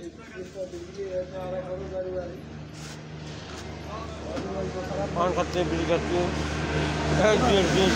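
A young man sings close to the microphone.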